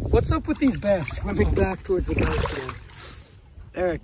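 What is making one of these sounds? Shallow water splashes around wading feet.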